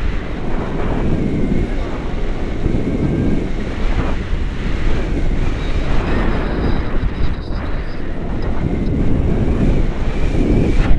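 Wind rushes loudly past a microphone outdoors.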